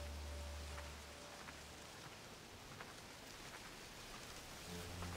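Footsteps crunch softly on dry earth.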